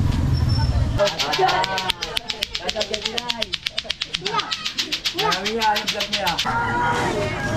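Children shout and laugh excitedly close by.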